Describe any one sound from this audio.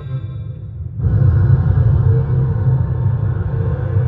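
A dragon roars loudly with a deep rumble.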